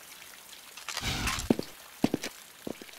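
Rapid gunshots ring out in a short burst.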